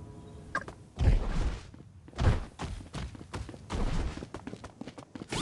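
Heavy footsteps thud as a large creature runs.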